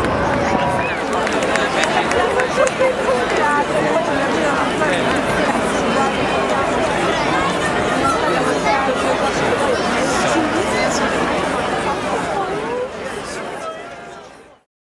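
A large crowd chatters loudly outdoors.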